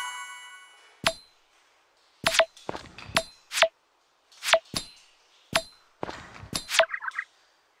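A hammer strikes rock with sharp clanks.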